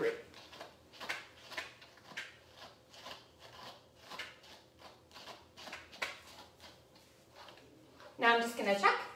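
A brush strokes rhythmically through a dog's fur.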